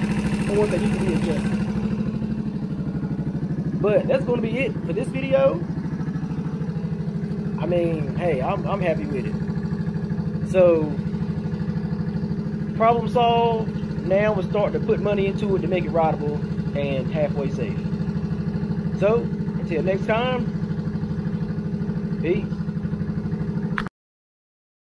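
A small motorcycle engine idles steadily and evenly.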